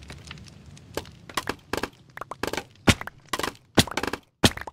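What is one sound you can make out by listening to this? Blocks in a game burst and crumble with a run of sharp cracking bangs.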